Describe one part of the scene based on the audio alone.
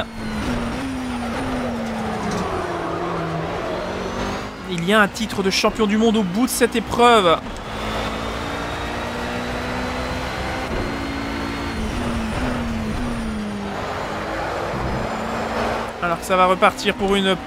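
A race car engine roars and shifts through gears.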